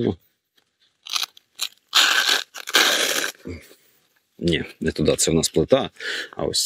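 Fabric rustles as a pouch is handled.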